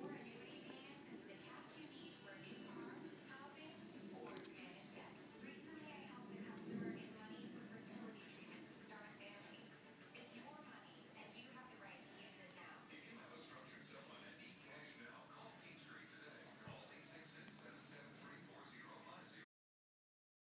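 Cloth rustles as hands shuffle fabric pieces.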